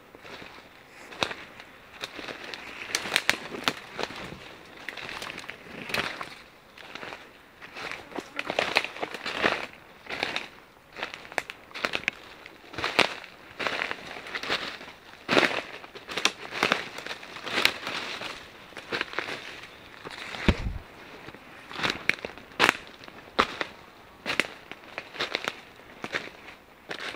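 Footsteps crunch through dry leaves and twigs on the forest floor.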